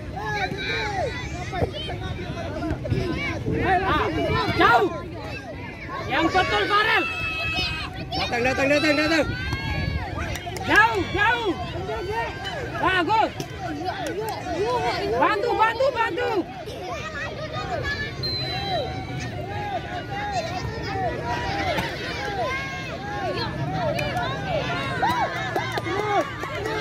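Children shout excitedly outdoors.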